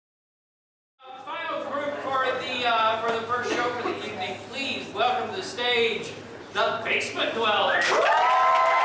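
A middle-aged man speaks with animation to an audience.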